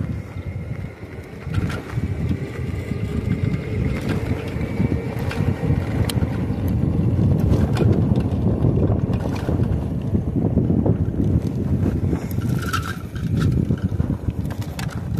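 Bicycle tyres roll and hum on a paved path.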